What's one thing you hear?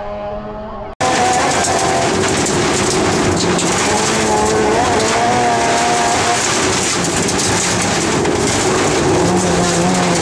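A rally car's engine revs hard, heard loudly from inside the car.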